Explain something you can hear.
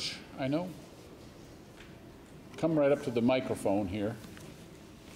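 An elderly man speaks into a microphone at a lectern, heard through loudspeakers in a large echoing hall.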